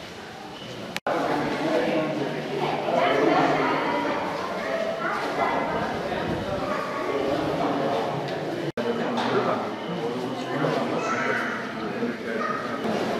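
A crowd of men murmurs and talks in an echoing hall.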